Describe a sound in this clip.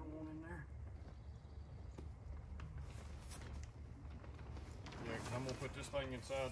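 A man talks casually nearby, outdoors.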